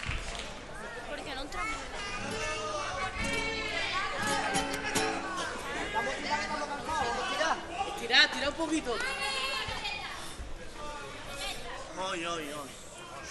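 A group of men sing together on a stage.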